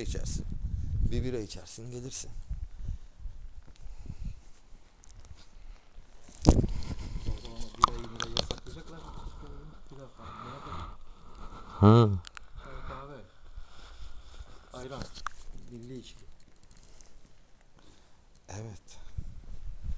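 A young man talks casually close to the microphone.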